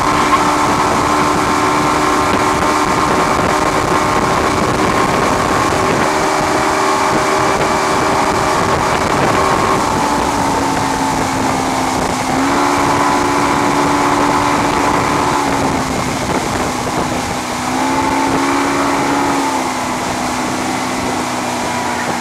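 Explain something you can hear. Water rushes and churns in a boat's wake.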